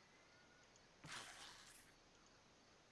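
A short whooshing interface sound plays.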